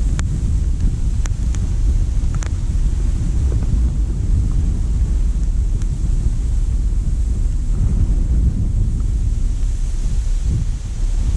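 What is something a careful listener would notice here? Wind blows steadily into a microphone outdoors.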